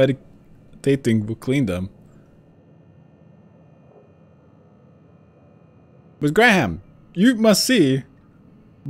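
A man speaks calmly and close, in short phrases.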